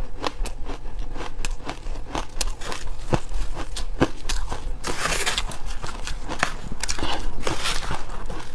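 A young woman chews crunchy food loudly close to a microphone.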